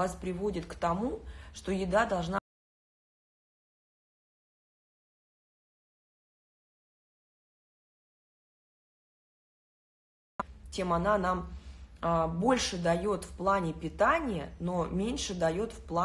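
A young woman speaks to the listener with animation, close to the microphone.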